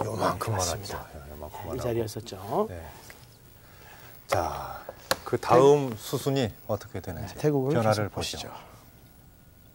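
A middle-aged man speaks with animation into a microphone.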